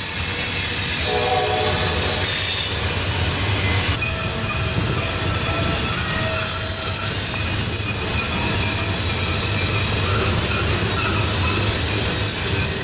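Steel wheels squeal on the track.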